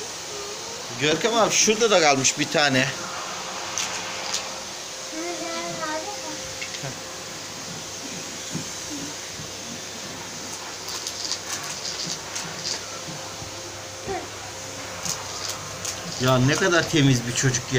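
A young boy talks and shouts excitedly close by.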